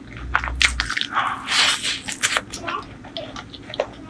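A woman slurps food close to a microphone.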